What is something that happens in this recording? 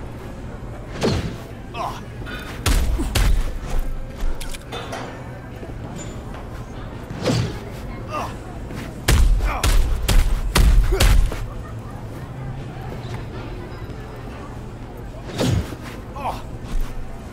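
A man grunts and groans in pain.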